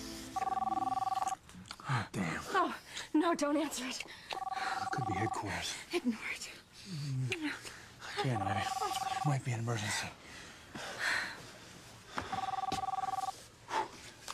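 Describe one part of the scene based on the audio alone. A telephone rings in repeated bursts.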